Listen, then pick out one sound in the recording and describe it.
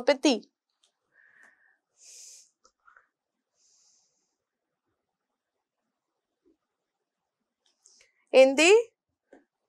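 A woman speaks calmly into a close microphone, with long pauses.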